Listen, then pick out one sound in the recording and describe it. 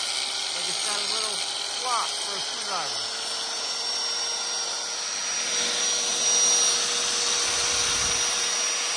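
An angle grinder whines steadily as it grinds against metal.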